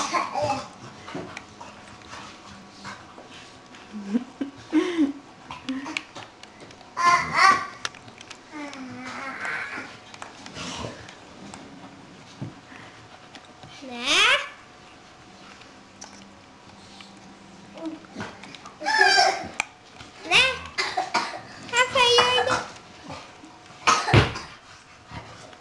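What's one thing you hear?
A puppy chews and gnaws on a plastic game controller.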